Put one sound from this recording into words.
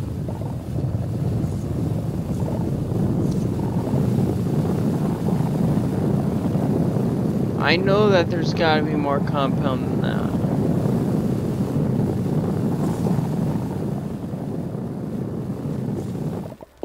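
A small vehicle's motor rumbles steadily as it drives over rough ground.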